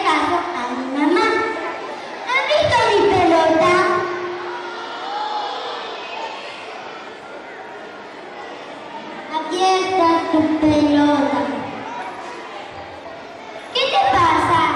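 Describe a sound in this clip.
A young girl speaks through a microphone and loudspeakers, with animation.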